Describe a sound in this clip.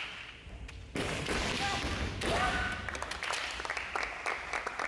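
Kendo fighters shout loudly in a large echoing hall.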